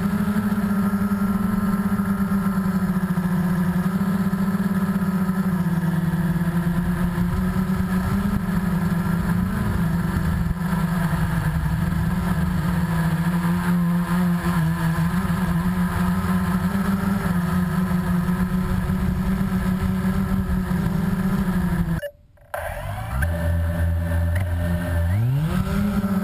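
A drone's propellers buzz steadily and loudly close by.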